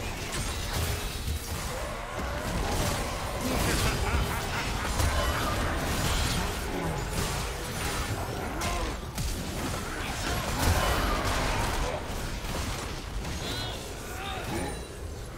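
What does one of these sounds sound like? Weapons strike repeatedly with sharp hits.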